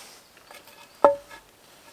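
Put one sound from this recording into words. A hatchet blade thunks into a log.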